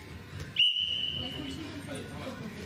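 A referee's whistle blows one sharp blast.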